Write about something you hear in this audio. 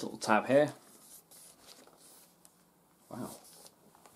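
A laptop slides out of a cardboard box with a soft scrape.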